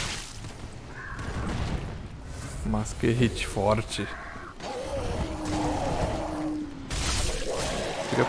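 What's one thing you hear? Swords clash and strike.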